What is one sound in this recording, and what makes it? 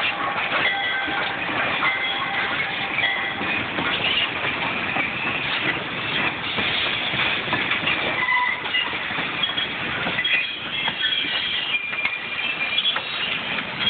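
Railway carriages rumble and clatter past close by on the tracks.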